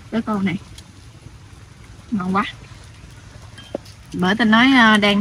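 A young woman speaks close by in short bursts.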